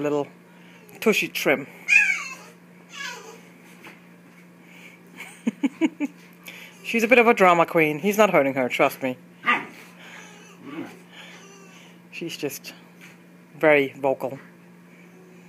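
Two dogs growl and whine playfully.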